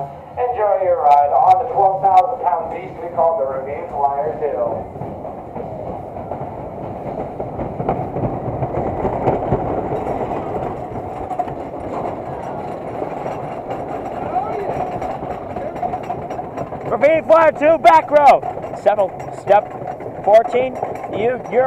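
Young women scream loudly on the ride.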